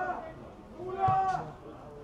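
A football is kicked hard with a thud.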